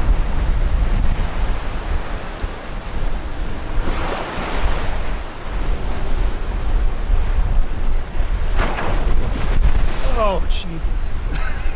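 Strong wind roars across the open water.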